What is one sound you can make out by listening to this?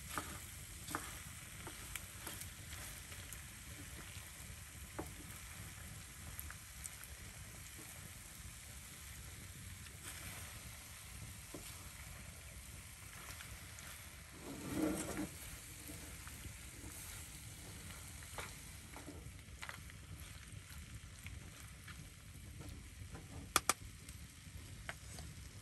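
A wooden spoon scrapes and taps against a frying pan.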